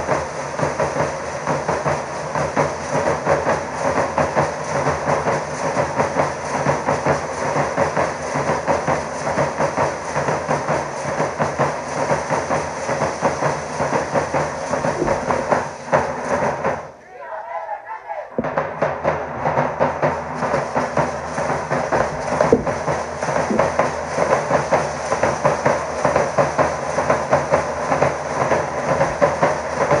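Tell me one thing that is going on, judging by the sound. Dancers' costumes rattle and jingle as they step.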